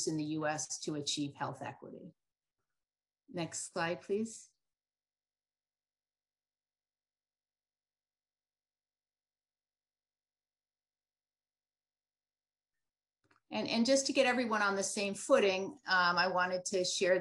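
A woman speaks calmly through a microphone, as on an online call.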